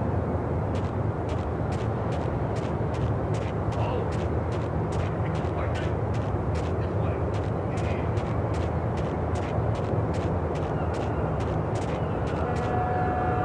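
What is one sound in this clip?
Quick footsteps run on hard ground.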